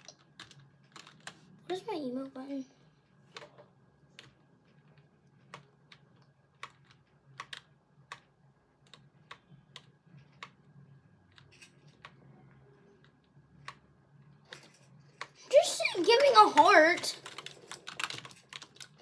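A video game's building sounds click and tap in quick bursts.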